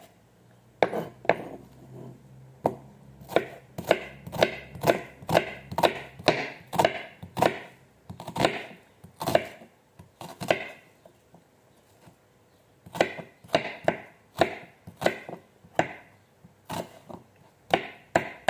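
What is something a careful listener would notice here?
A knife chops through an onion onto a wooden board in quick, sharp knocks.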